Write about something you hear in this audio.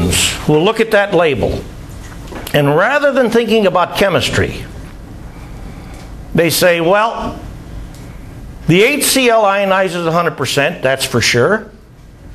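An elderly man speaks with animation to a room, heard through a microphone.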